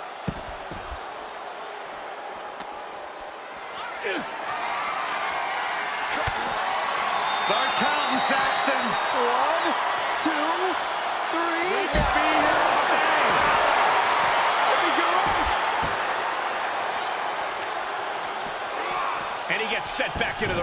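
Blows and slams thud as wrestlers fight.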